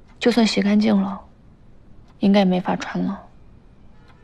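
A young woman speaks quietly nearby.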